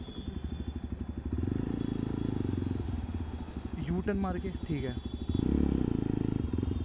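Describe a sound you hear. A motorcycle engine rumbles steadily up close, revving up briefly near the end.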